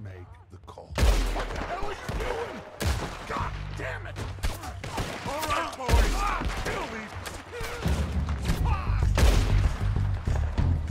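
Gunshots crack repeatedly nearby.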